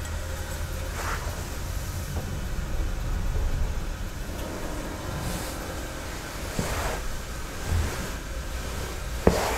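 Small objects knock lightly against each other.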